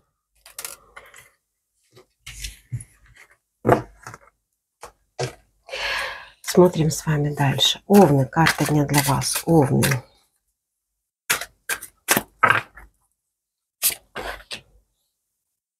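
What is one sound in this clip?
Playing cards rustle and slide against each other as they are shuffled.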